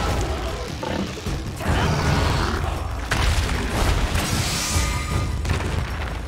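A blade slashes and strikes a large beast with heavy thuds.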